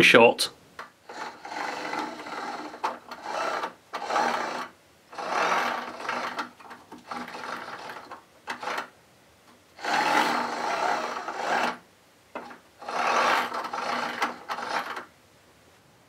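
Small electric motors whir in short bursts.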